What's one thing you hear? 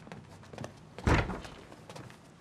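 A door opens with a loud clunk.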